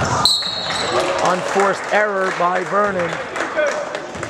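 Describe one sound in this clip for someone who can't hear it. A man shouts out loudly nearby in a large echoing hall.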